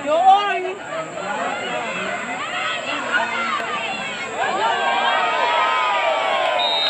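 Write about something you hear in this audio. A crowd of young women shouts and cheers excitedly outdoors.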